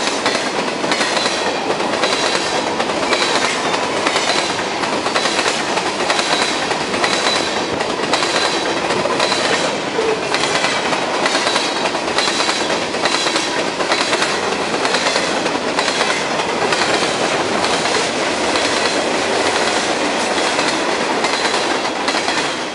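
Steel wheels squeal against the rails.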